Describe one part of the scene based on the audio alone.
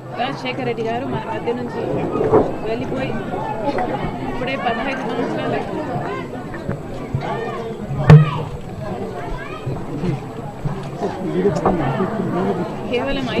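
A woman speaks calmly into close microphones.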